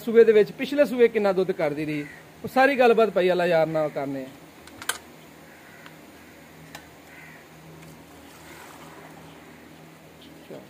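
Milk splashes as it is poured from a metal pail into a bucket.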